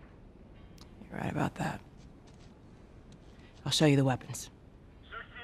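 A woman speaks firmly.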